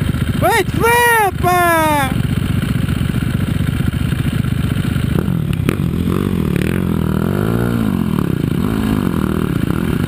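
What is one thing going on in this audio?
A dirt bike engine revs loudly close by, rising and falling in pitch.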